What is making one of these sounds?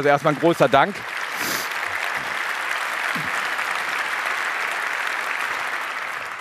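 A large audience claps and applauds.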